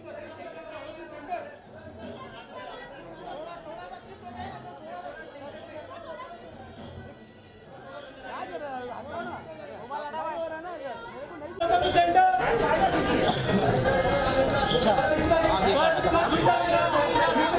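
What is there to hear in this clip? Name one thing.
Men and women chatter nearby in a crowd.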